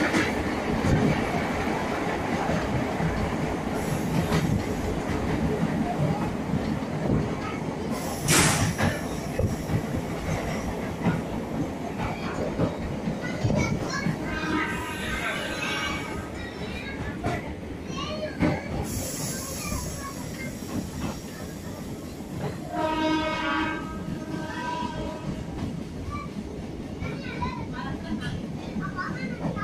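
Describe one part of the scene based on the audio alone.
Wind rushes past an open train door.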